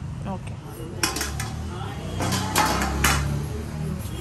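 Metal plates clang and clatter as they are set down.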